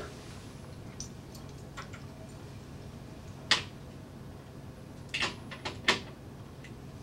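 Small clicks and knocks of handled objects sound now and then.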